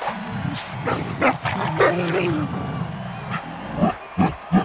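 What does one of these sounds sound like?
A beast growls and snarls loudly.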